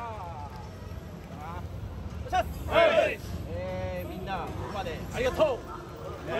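A man speaks up loudly to a group of men.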